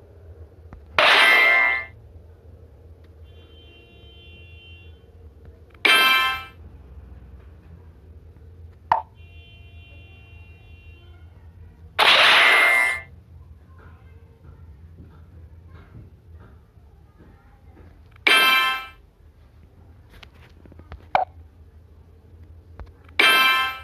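Game blocks burst with short, bright chiming pops, again and again.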